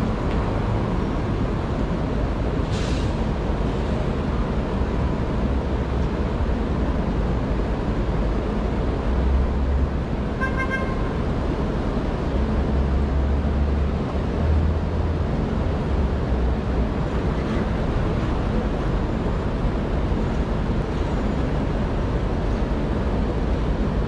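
City traffic hums steadily in the distance.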